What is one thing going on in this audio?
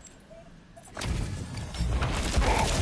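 A magical energy beam roars with a loud rushing whoosh.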